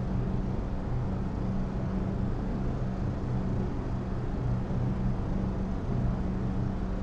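A jet engine drones steadily with a low rumbling hum.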